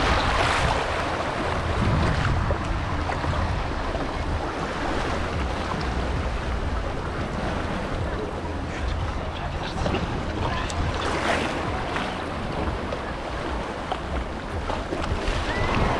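Shallow water laps gently against rocks.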